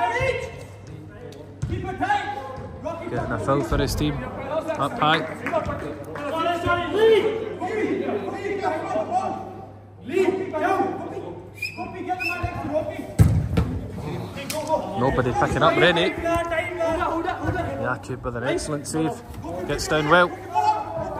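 Several men talk and call out to each other in a large echoing hall.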